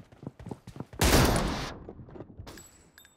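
A gunshot bangs loudly and rings out.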